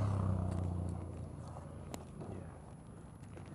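A motorcycle engine rumbles and slows down.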